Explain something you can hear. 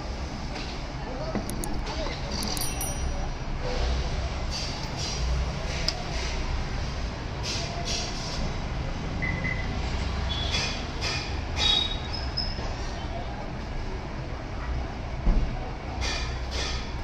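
Small metal engine parts clink and tap against each other.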